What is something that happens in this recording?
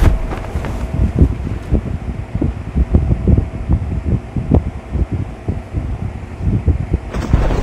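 Wind rushes steadily past a parachute as it drifts down.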